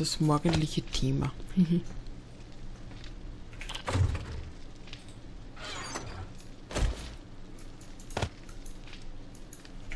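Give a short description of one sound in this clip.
Short soft clicks sound as items are moved between slots.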